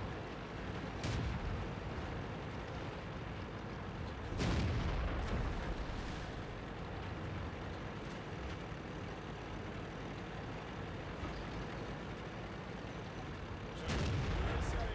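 A tank gun fires with loud booms.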